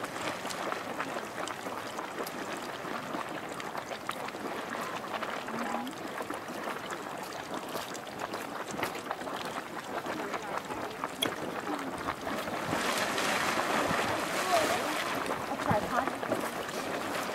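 Hot water bubbles and gurgles in a pool.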